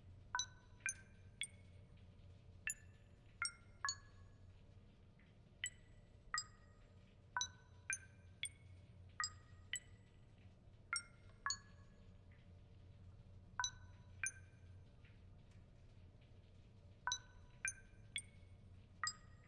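Short electronic beeps chime again and again at different pitches.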